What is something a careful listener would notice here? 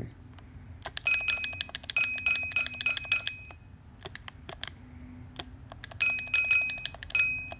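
Game purchase chimes ring in quick, bright repeated notes.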